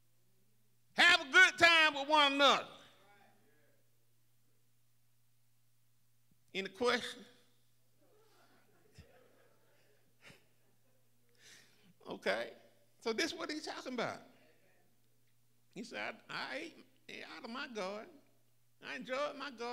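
An elderly man preaches with animation into a microphone, pausing between phrases.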